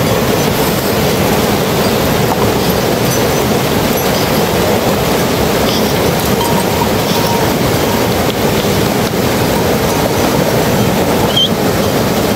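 A rushing stream roars steadily over rocks close by.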